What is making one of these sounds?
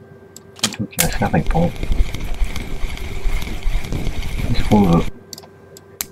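A fishing reel clicks and whirs as its handle is cranked.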